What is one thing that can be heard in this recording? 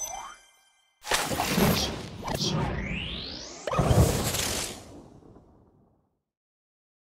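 A magical burst explodes with a bright whooshing sparkle and fades away.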